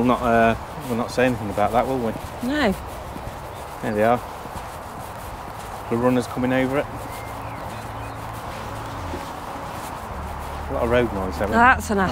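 Wind rustles through tall grass outdoors.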